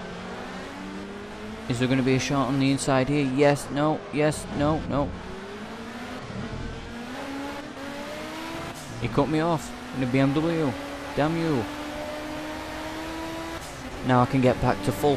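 A race car engine revs up and shifts through gears.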